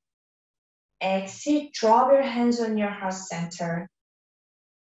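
A young woman speaks calmly and softly, close to a microphone.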